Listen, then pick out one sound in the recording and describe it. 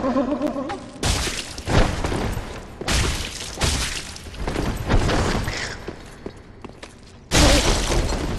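Metal blades clash and strike in sharp hits.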